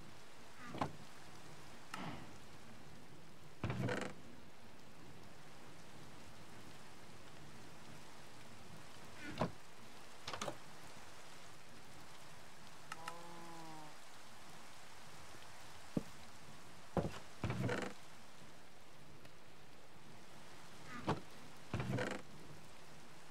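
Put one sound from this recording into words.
A wooden chest creaks open and thuds shut several times.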